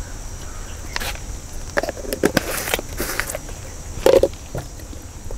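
Glass and jars clink and knock lightly.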